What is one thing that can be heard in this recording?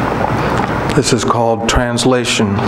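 A middle-aged man reads aloud calmly through a microphone.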